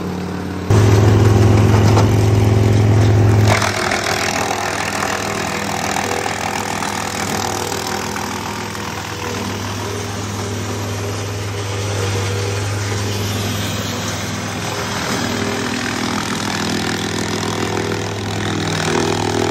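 A wood chipper grinds pine branches with a rough crackling noise.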